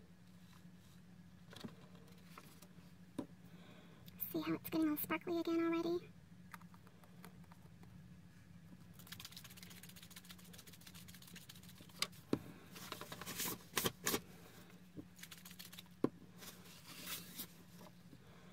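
Paper rustles as it is handled and folded.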